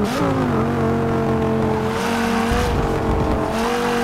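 Tyres screech through the corners.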